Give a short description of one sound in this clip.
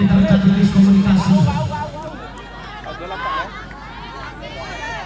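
A large outdoor crowd of men and women chatters and shouts.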